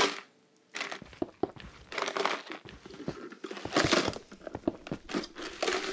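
Stone blocks thud as they are placed.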